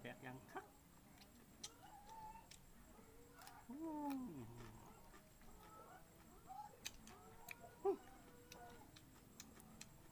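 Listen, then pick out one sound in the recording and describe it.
A man chews and crunches food close by.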